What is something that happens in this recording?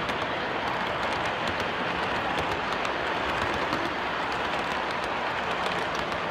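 A model train rumbles steadily along the track.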